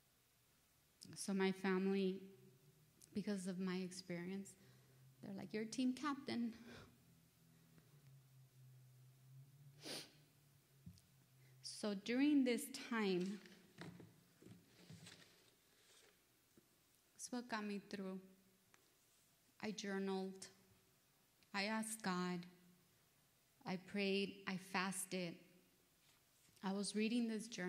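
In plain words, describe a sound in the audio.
A woman speaks calmly into a microphone, heard over a loudspeaker, with pauses between phrases.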